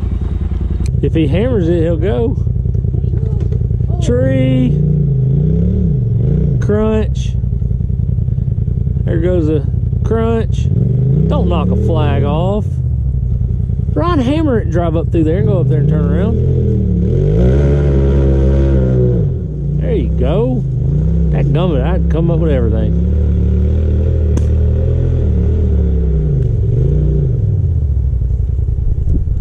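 An off-road vehicle's engine rumbles close by, revving up and down in bursts.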